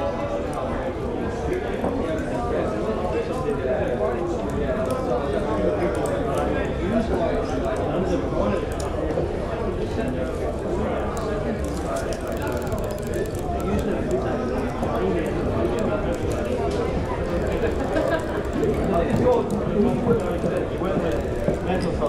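A fire crackles in a hearth.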